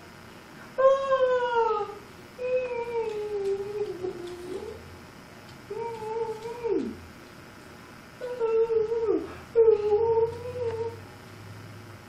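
An elderly man hums and makes playful sing-song sounds close by.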